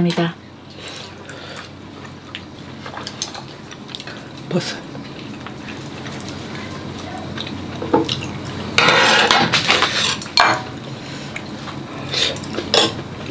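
Food sizzles steadily in a hot pan.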